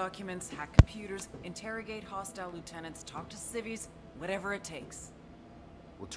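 A woman speaks firmly and urgently.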